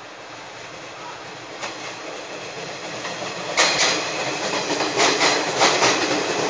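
A train rumbles into the station, growing louder as it approaches.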